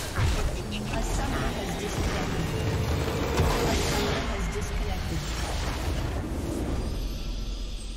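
Magic spell effects crackle and boom in a busy video game battle.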